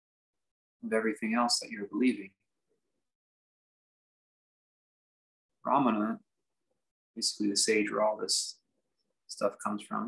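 A young man speaks calmly and close by, in short phrases with pauses.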